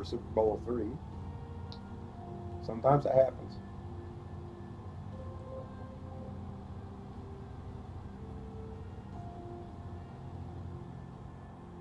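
Propeller engines of a bomber drone steadily, then quieten.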